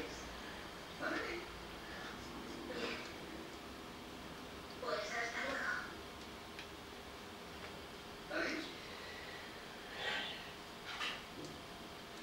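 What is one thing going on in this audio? A middle-aged woman speaks in short bursts, close to the microphone.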